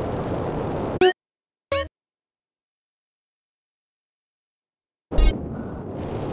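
Menu beeps chime briefly.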